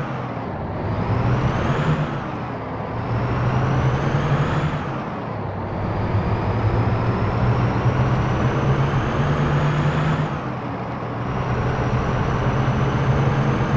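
A bus engine drones and rises in pitch as it speeds up, then drops as the gears change.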